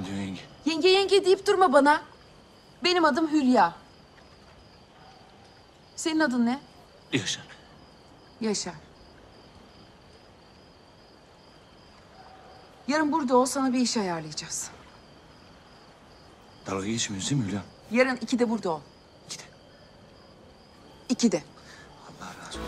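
A woman speaks tearfully and pleadingly, close by.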